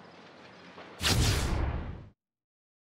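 A loud, deep whoosh swells and quickly fades.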